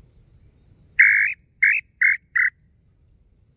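A man blows a bird call whistle in four short, shrill blasts.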